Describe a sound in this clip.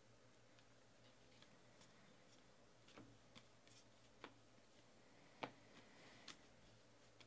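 Cards shuffle and flick softly between hands, with small clicks and slaps.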